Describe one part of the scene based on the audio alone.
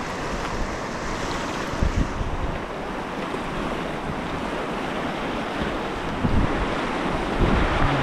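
A paddle splashes into the water.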